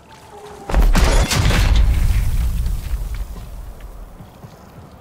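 A heavy metal door grinds and rumbles open.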